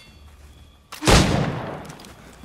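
A musket fires with a loud bang.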